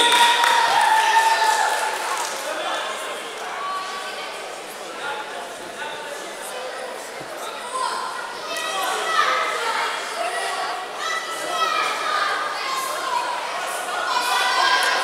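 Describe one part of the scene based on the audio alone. A crowd of spectators shouts and chatters in a large echoing hall.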